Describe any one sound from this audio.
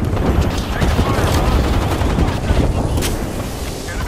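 A device hums and whirs as it charges.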